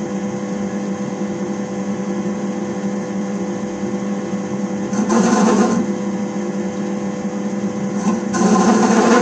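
A metal lathe hums steadily as it spins.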